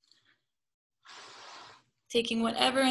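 A young woman breathes out audibly.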